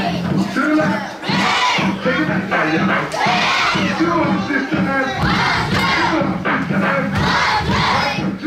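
A crowd of young children sings and chants loudly in an echoing hall.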